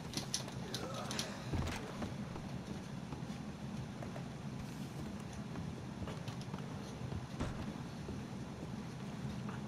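Boots thud on wooden floorboards.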